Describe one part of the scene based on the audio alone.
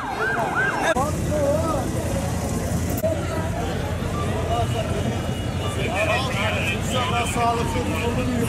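A crowd chatters and calls out outdoors.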